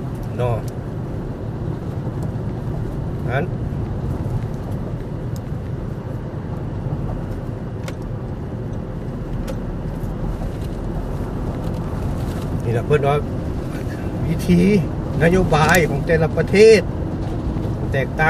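A car's engine hums steadily while driving.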